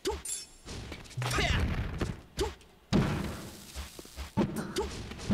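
Video game fighting sounds hit and whoosh in quick bursts.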